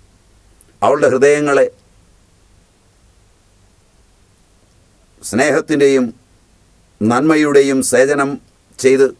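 An elderly man speaks emphatically into a close microphone, in short bursts with pauses.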